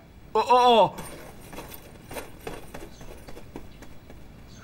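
Footsteps hurry across a floor.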